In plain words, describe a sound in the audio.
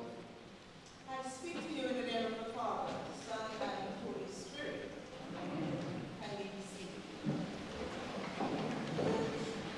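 A man speaks slowly and solemnly in an echoing hall.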